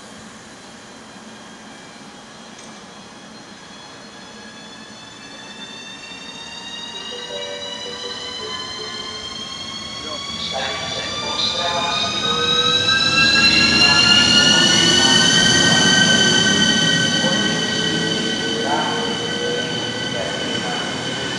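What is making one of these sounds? An electric locomotive approaches and rolls past close by with a rising, high whine.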